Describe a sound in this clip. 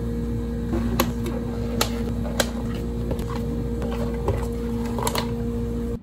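Plastic cups knock on a counter.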